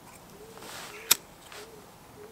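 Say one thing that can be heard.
A lighter clicks and sparks alight.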